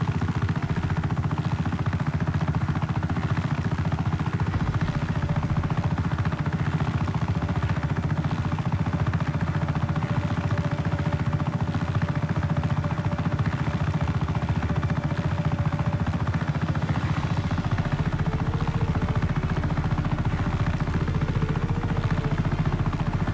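A helicopter's rotor thumps steadily and loudly.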